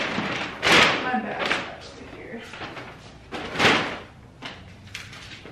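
Paper bags rustle and crinkle.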